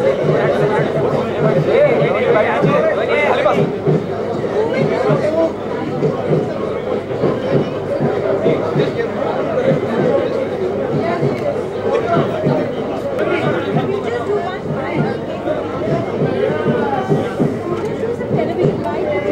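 A crowd of men and women chatter loudly nearby.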